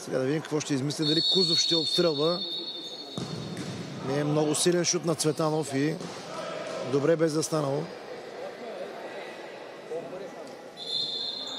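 A referee's whistle blows a long, steady blast.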